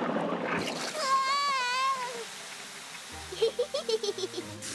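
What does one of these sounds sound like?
A young girl laughs happily.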